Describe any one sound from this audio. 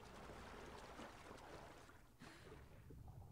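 A body plunges into water with a splash.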